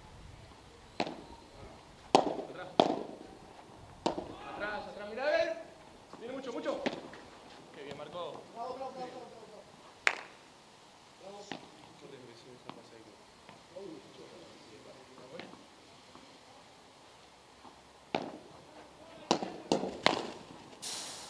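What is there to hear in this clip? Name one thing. Padel rackets strike a ball with sharp pops.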